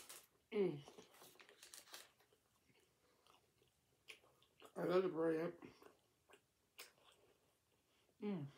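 A woman chews food wetly close to a microphone.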